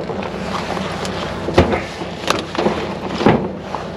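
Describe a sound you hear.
A bicycle clatters as it is set down in a truck bed.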